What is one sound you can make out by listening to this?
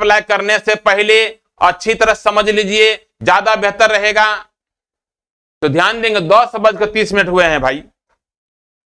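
A middle-aged man speaks clearly and with animation into a clip-on microphone.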